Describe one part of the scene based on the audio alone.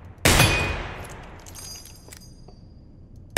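A revolver's cylinder clicks open and shells rattle out during a reload.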